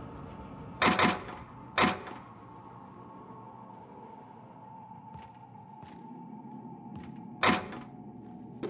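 Metal locker doors clatter open with sharp knocks.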